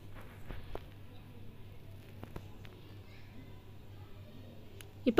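Food sizzles softly in a pot.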